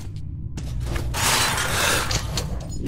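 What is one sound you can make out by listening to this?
A metal lever scrapes and grinds as it is pulled.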